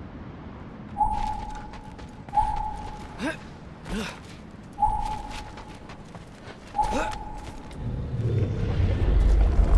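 Footsteps scrape and thud on stone.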